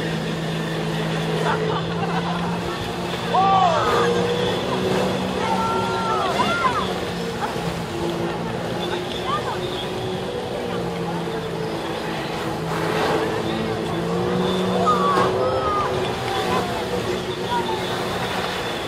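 Water jets roar and spray onto the water surface.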